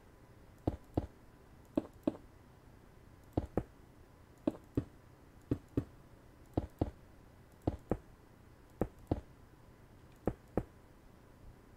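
Game footsteps tread on stone in a paired rhythm.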